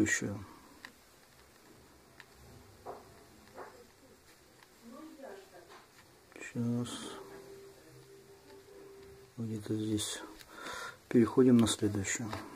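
Thread rasps softly as it is pulled through thick felt.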